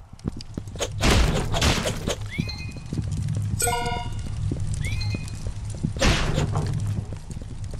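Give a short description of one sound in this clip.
Wooden crates smash and splinter apart.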